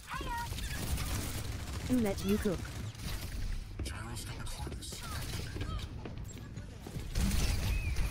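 Twin guns fire in rapid bursts.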